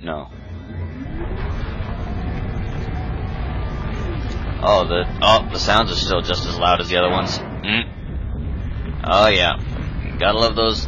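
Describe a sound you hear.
A heavy metal door grinds and rumbles as it rolls open.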